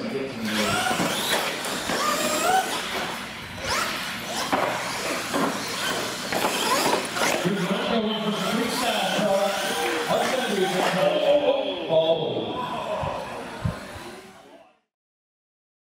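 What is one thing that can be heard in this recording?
Small electric motors whine as toy cars race.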